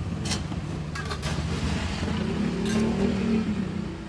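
A metal spatula scrapes against a hot griddle.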